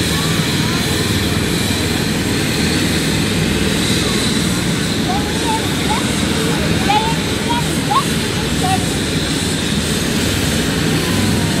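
A helicopter engine whines and rumbles steadily nearby, outdoors.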